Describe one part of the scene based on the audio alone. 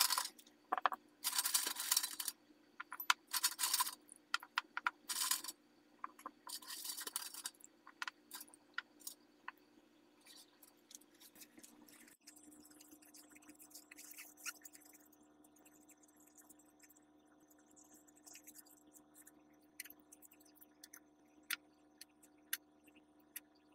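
Small metal parts clink and tap against each other.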